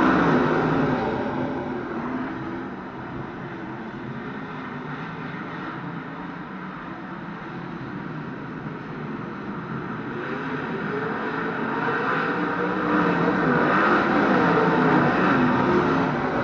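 Racing engines roar around a dirt track outdoors.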